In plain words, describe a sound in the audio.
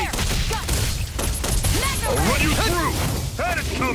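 Weapons strike creatures with sharp hits.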